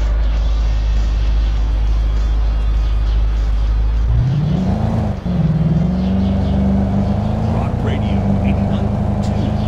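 A car engine hums steadily, then revs up and holds a higher pitch.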